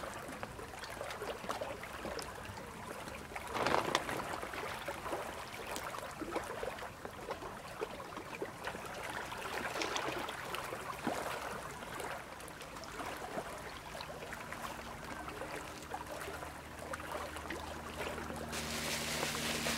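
A plastic bag rustles and crinkles under handling.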